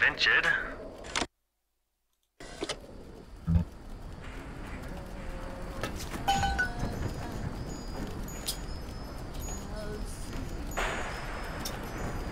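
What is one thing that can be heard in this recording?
A wrench clanks against a metal casing.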